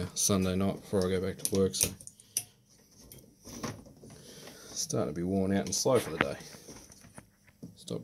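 Pliers snip and crack metal strips off battery cells.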